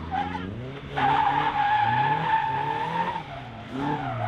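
Tyres squeal on tarmac as a car slides around.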